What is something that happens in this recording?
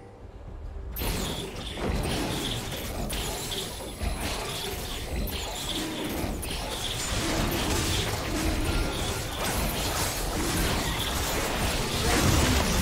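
Spell blasts and magical hits crackle and whoosh in a fast, busy fight.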